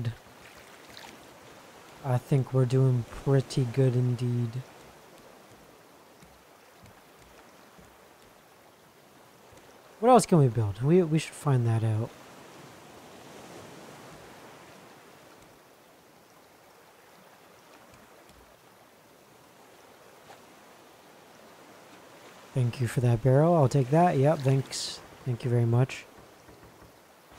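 Rain patters on the sea.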